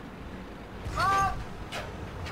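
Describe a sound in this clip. A short warning chime sounds.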